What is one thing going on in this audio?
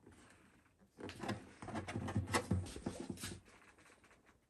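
Fingers rub and tap on a guitar's wooden top, thudding softly.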